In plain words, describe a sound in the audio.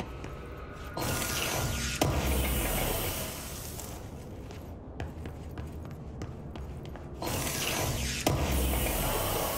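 A bright shimmering whoosh swells and fades as a crate opens.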